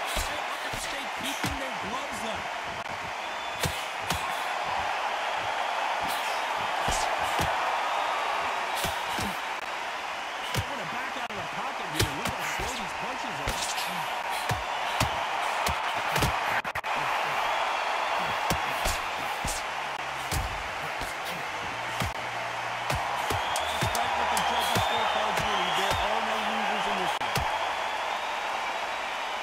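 Punches thud against bodies and gloves.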